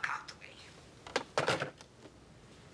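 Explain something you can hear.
A telephone handset clatters down onto its cradle.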